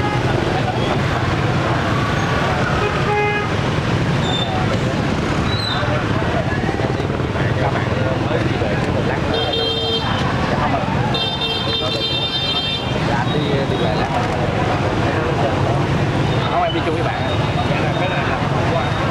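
A crowd chatters outdoors in the background.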